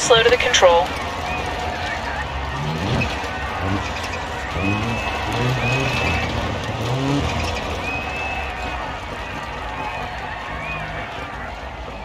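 A rally car engine revs and roars.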